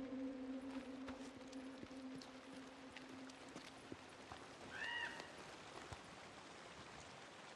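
Footsteps run across pavement and through grass.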